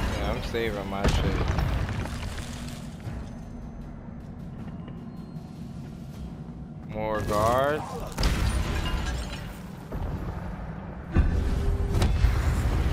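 A magic spell whooshes and bursts with a crackling blast.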